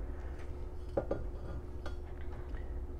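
A metal bar knocks and scrapes against a hard surface.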